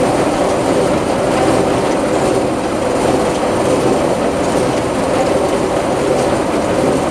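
A hay baler clanks and rattles rhythmically as it picks up hay.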